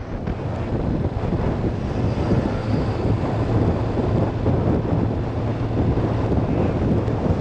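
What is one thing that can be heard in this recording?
A motorcycle engine hums steadily at speed.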